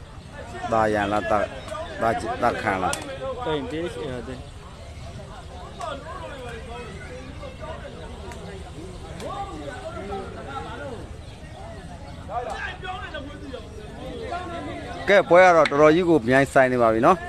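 A man talks loudly and with animation.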